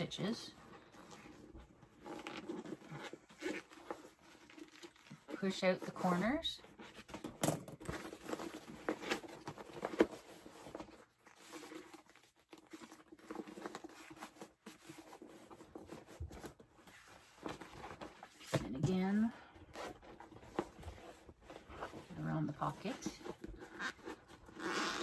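Stiff fabric rustles and crinkles as it is handled.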